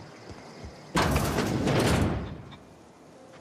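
A heavy metal door slides open with a loud rushing whoosh.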